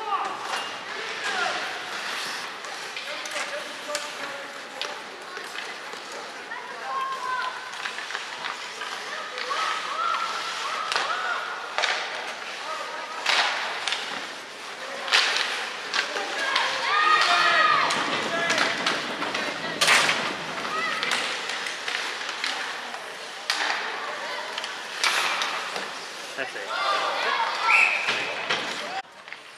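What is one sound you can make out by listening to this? Young players shout to each other across the rink.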